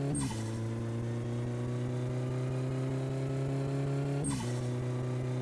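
A car engine briefly dips in pitch as the gears change.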